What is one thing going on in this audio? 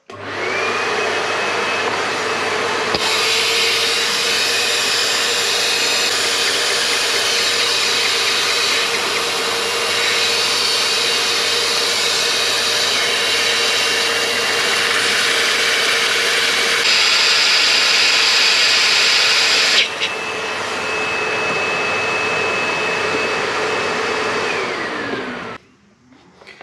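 An engine runs with a loud steady hum, then winds down and stops.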